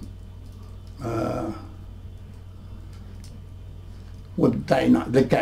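An elderly man speaks calmly and close by, in short bursts.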